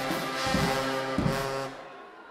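Drums boom along with a brass band.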